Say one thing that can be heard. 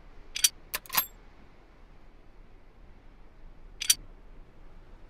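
Stone rings click sharply as they turn into place.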